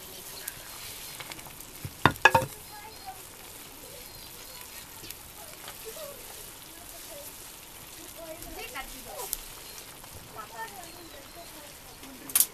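A wooden spatula stirs and knocks against a metal pan.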